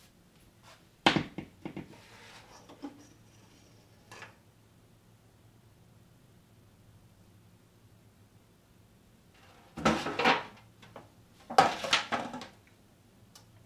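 A metal tray rattles and clanks as it is handled.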